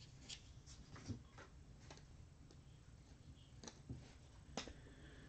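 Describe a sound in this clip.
Cards shuffle and flick against each other close by.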